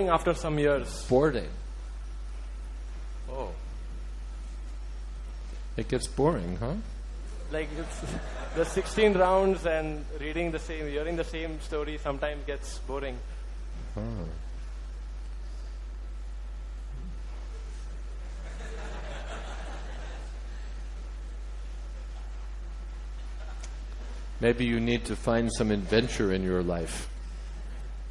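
An elderly man speaks calmly into a microphone, in short phrases with long pauses.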